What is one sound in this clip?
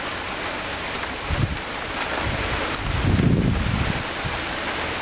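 Thunder rolls after a lightning strike.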